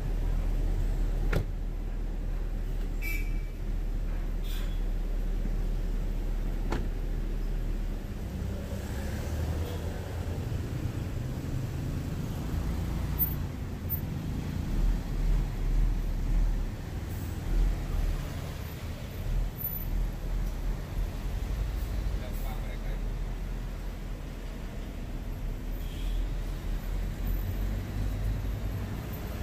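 Traffic rumbles steadily along a busy street outdoors.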